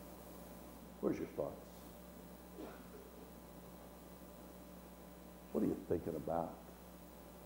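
An older man speaks in short bursts with long pauses, heard through a microphone.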